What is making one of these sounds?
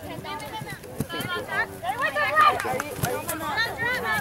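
A soccer ball is kicked with a dull thud.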